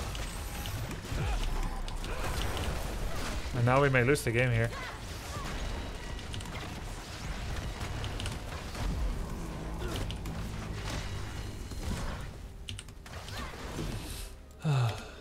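Video game battle effects whoosh and clash.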